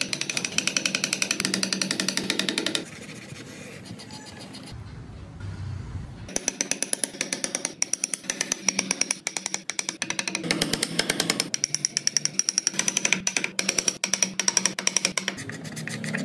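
A chisel scrapes and shaves wood in quick, rhythmic strokes.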